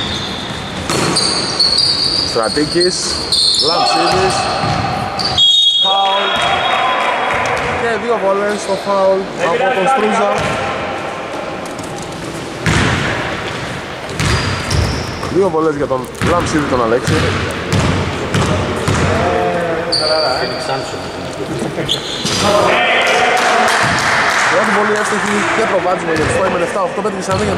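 Men shout to each other across an echoing gym.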